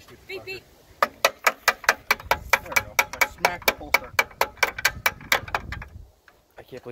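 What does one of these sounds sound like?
A ratchet clicks rapidly.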